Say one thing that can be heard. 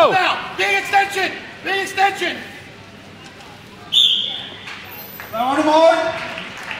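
Men shout loud encouragement in a large echoing hall.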